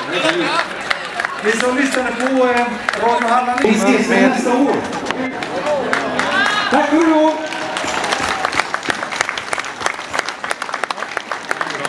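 A crowd claps steadily outdoors.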